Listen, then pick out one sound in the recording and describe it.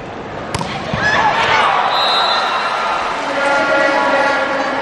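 A crowd in a large hall cheers and shouts loudly.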